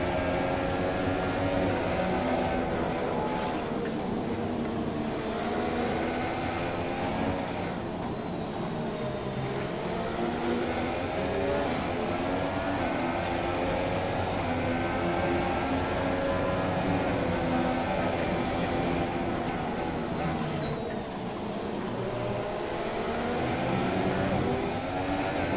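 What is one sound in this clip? A racing car engine roars and whines, rising and falling in pitch as it shifts gears.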